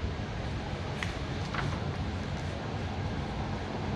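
A glossy paper page is turned with a soft rustle.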